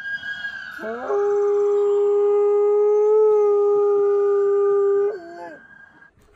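A dog howls long and steadily nearby.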